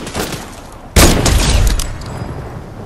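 A sniper rifle fires a single loud, booming shot.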